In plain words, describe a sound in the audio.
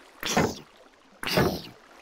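A sword strikes a zombie with a dull thud.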